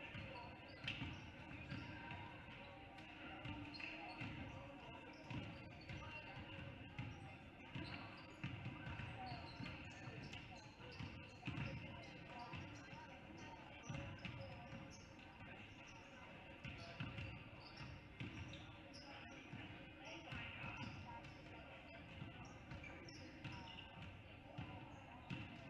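A basketball bounces repeatedly on a wooden court.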